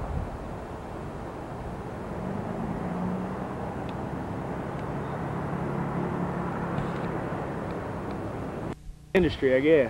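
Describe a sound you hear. Wind rustles through leafy trees outdoors.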